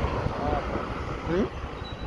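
A car engine hums nearby.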